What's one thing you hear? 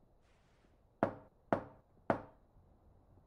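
A fist knocks on a wooden door.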